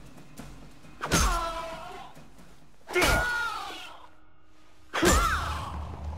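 An axe strikes hard with heavy thuds.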